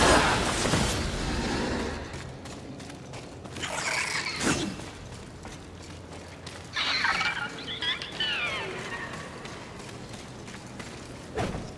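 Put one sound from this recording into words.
Footsteps run over gravel.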